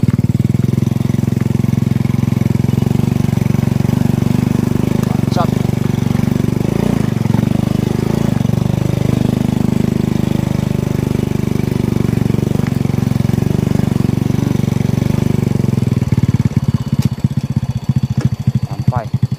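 A motorbike engine hums steadily close by, then slows to a low putter.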